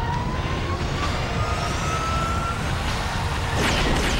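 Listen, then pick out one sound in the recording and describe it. An aircraft engine roars overhead.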